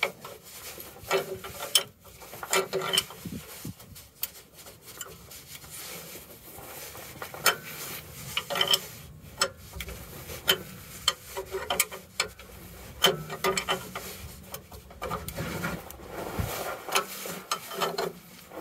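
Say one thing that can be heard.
Metal tools clink against a metal part.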